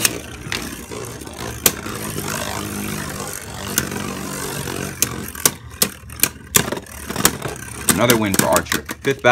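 Spinning tops whir and grind across a plastic bowl.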